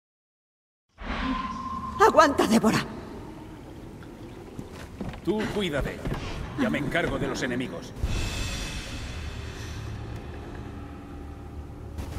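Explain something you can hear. Footsteps thud slowly on creaking wooden boards.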